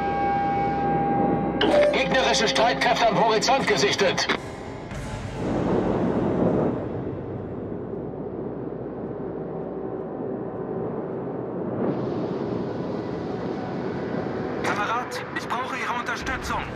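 Water rushes and churns along a moving warship's hull.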